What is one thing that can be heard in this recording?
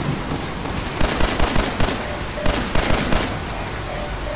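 Laser gunfire zaps in rapid bursts.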